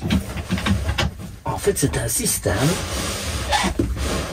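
A cushion rustles and thumps as it is moved.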